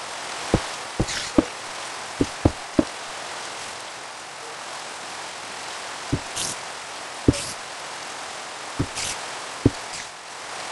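Blocks thud into place one after another in a video game.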